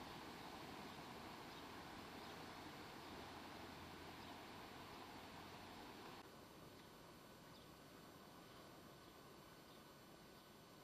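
Water rushes steadily over a small weir.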